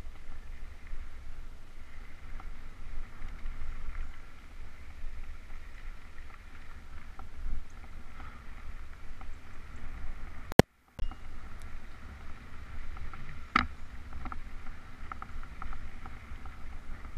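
Bicycle tyres crunch and rattle over a dirt trail.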